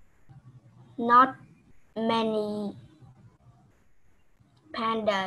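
A young woman speaks slowly and clearly into a microphone, heard through an online call.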